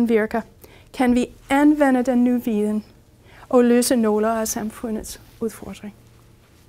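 A woman speaks calmly to an audience, heard through a microphone.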